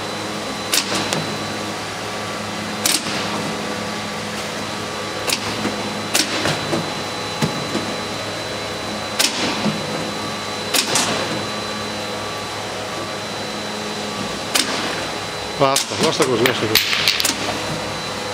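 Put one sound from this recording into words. Fruit thuds and knocks as it drops off a conveyor into a bin.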